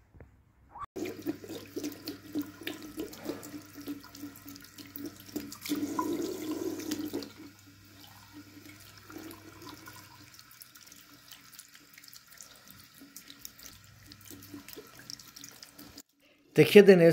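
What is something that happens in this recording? Water runs from a tap and splashes into a basin.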